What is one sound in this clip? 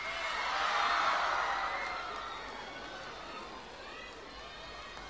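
A large crowd cheers and screams loudly in a big echoing arena, slowly fading.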